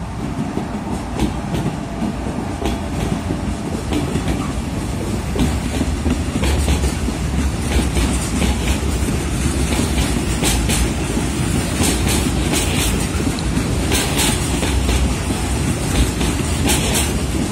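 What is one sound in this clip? Freight wagons clatter and rattle over the rail joints.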